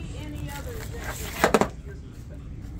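A vinyl record slides out of its paper sleeve.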